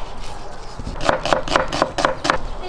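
A knife chops onion on a wooden board with quick, regular knocks.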